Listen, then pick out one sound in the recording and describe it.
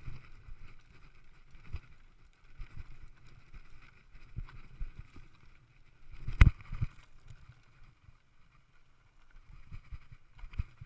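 A mountain bike's frame and chain rattle and knock over rough rocks.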